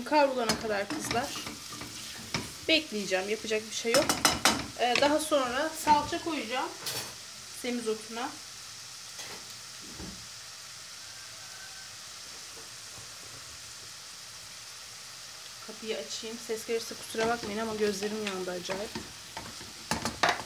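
A wooden spoon scrapes and stirs in a pot.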